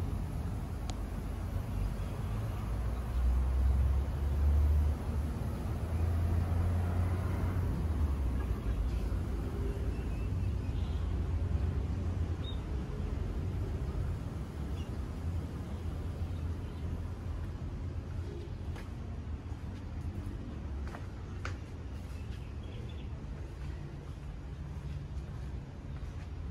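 Wind blows outdoors, rustling leaves.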